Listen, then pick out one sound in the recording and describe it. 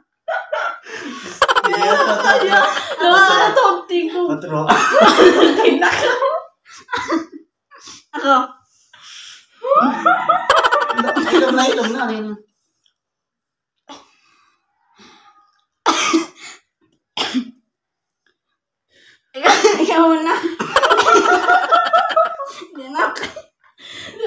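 Young women laugh loudly close by.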